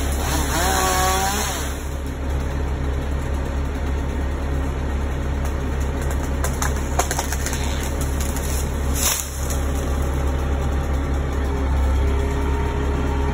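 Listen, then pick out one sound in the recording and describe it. A truck engine rumbles steadily nearby.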